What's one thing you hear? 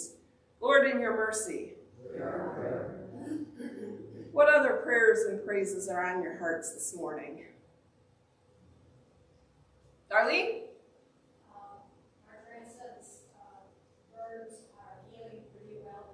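A woman speaks clearly to a room, in a space with a slight echo.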